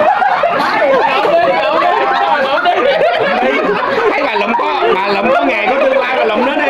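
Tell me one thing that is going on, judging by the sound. Several women chat lively together close by.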